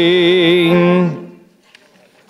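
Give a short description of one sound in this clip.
A brass band and singers hold a loud final chord that cuts off.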